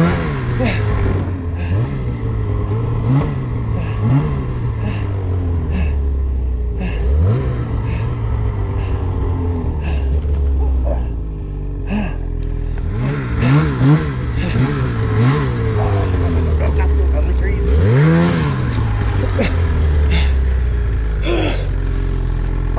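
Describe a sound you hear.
Snow hisses and sprays against a snowmobile.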